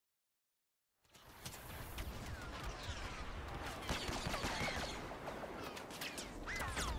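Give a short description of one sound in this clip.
Blaster shots fire rapidly in a game battle.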